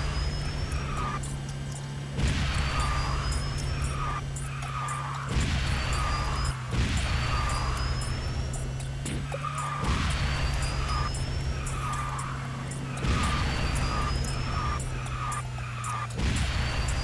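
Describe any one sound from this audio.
A racing car's engine hums steadily.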